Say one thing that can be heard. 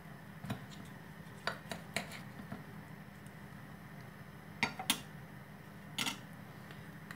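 A knife clicks and scrapes against a plate.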